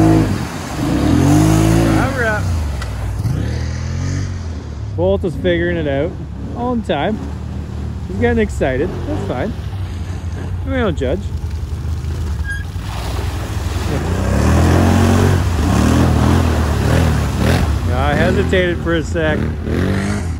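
Water splashes and sprays as a vehicle churns through deep mud.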